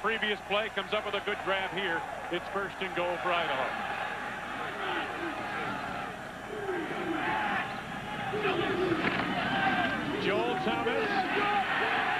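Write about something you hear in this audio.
A stadium crowd roars, growing louder as the play unfolds.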